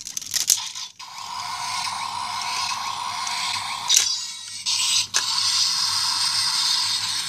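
A toy sword plays a loud electronic sound effect with a humming tone.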